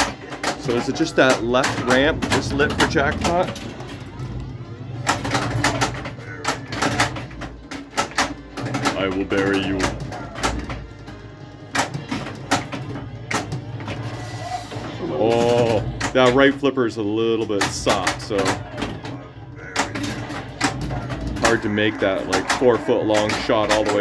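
Pinball flippers and bumpers clack and knock sharply.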